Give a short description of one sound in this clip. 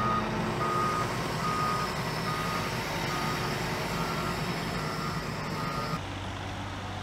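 A wheel loader's diesel engine rumbles and roars.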